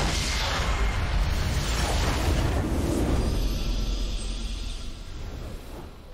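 A loud explosion booms and rumbles, then slowly fades away.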